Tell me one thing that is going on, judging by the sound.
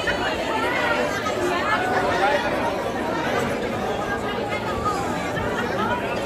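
Many voices cheer and scream with high-pitched shrieks.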